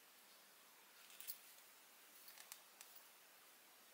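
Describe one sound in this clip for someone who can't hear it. Yarn rustles softly against a crochet hook.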